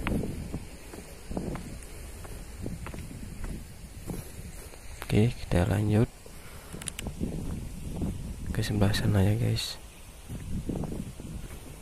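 Footsteps brush softly through grass.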